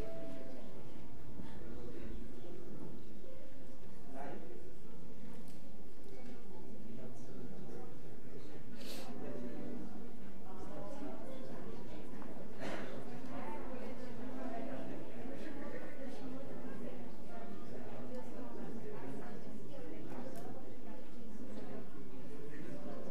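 A crowd of men and women murmurs and chatters in a large echoing hall.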